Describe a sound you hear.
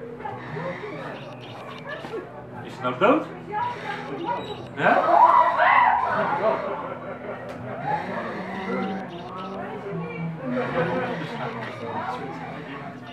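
A man speaks and growls in a low, theatrical voice nearby.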